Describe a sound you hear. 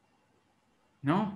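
A man speaks over an online call.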